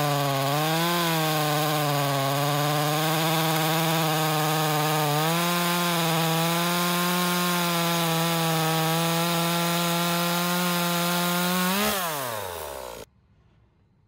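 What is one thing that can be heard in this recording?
A chainsaw engine roars steadily while cutting through wood, then winds down.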